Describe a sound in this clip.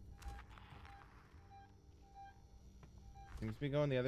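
An electronic tracker beeps at a steady pace.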